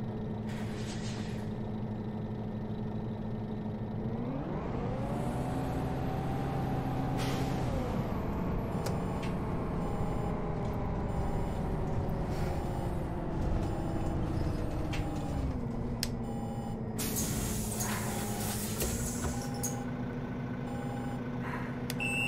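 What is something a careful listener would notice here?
A bus engine hums and revs up as it pulls away, then slowly settles.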